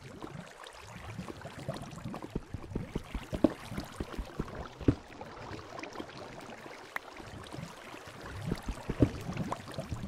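A pickaxe chips at stone with quick, repeated knocks.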